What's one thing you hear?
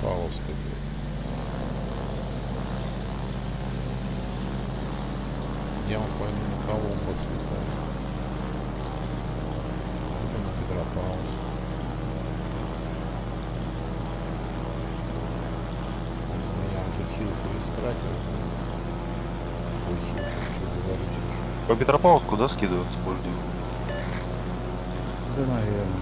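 Propeller plane engines drone steadily.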